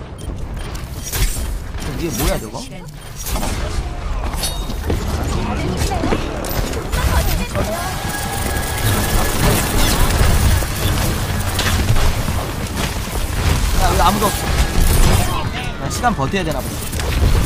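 Gunfire and explosions from a game blast loudly.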